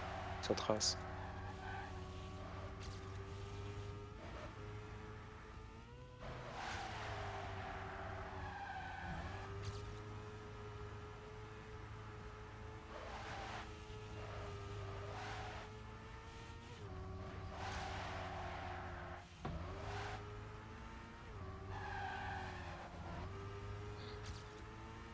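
A racing car engine whines steadily at high revs, rising and falling in pitch as it shifts gears.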